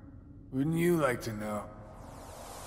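An elderly man speaks in a low, gruff voice.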